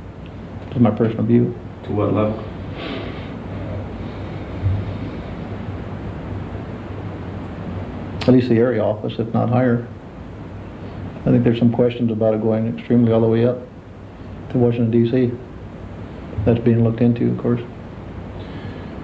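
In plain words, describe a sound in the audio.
A middle-aged man speaks calmly, close by, in short bursts with pauses.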